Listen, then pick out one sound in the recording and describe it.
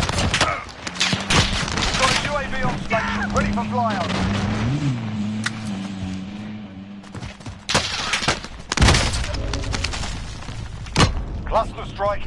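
Gunshots bang loudly in quick bursts.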